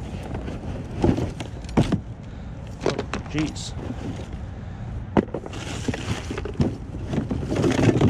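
Objects knock and clatter inside plastic bins.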